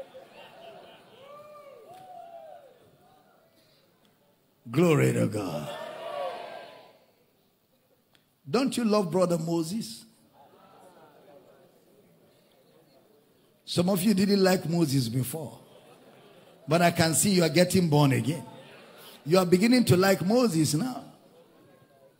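A middle-aged man preaches with animation through a microphone in a large echoing hall, in loud bursts with pauses.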